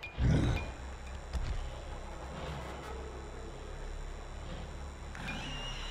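Zombies groan and snarl nearby.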